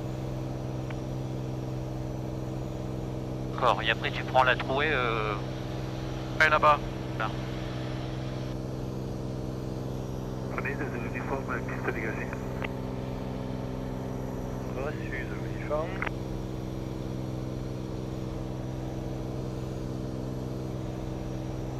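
An aircraft engine drones steadily inside a small cabin.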